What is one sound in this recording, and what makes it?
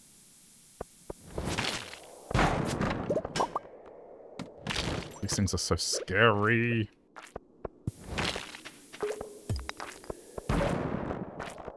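A sword slashes at monsters with quick swooshes.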